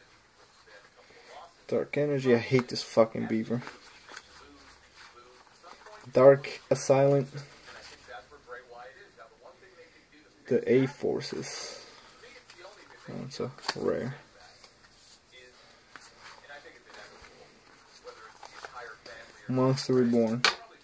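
Playing cards rustle and slide against each other as they are shuffled by hand.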